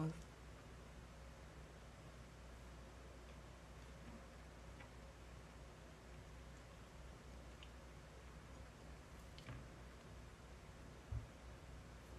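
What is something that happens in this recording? A young woman chews food quietly, close by.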